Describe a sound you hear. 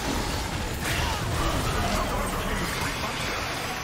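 Video game spell effects and blows clash during a battle.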